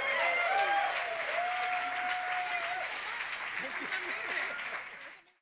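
A man chuckles softly near a microphone.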